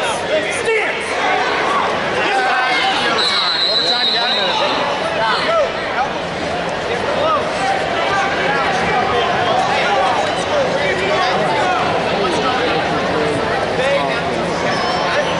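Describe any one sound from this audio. A crowd chatters and shouts throughout a large echoing arena.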